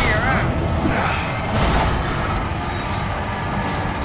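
Plastic bricks clatter and break apart.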